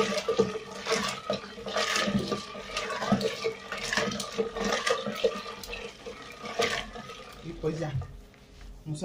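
A plastic spoon stirs and scrapes inside a glass jar of liquid.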